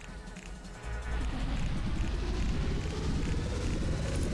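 A magic spell whooshes and swirls.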